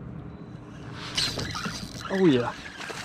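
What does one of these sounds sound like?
A fishing reel clicks and whirs as its line is wound in.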